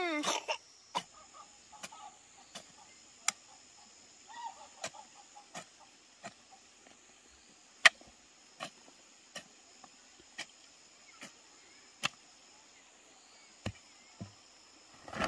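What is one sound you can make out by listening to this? A hoe chops into dry soil with sharp thuds.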